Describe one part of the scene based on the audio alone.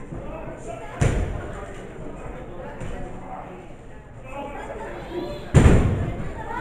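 A wrestler's body slams hard onto the ring mat with a loud thud.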